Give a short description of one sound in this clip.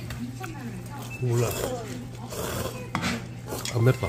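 A boy slurps noodles loudly up close.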